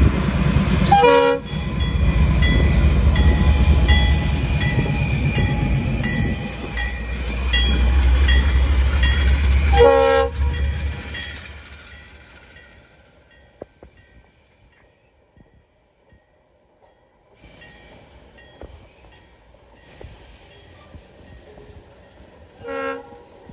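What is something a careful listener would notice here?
A train horn blasts in short bursts.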